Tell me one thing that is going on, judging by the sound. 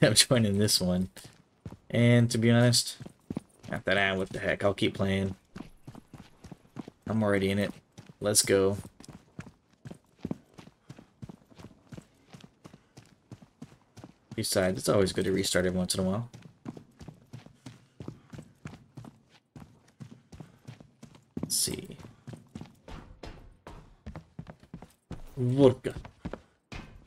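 Footsteps tread steadily over gravel and concrete.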